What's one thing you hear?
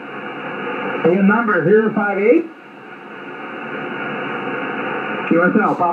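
A man speaks briefly through a radio loudspeaker, thin and crackly.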